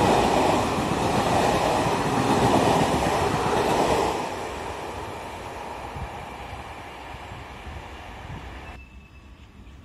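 A passenger train rumbles past on the tracks and fades away.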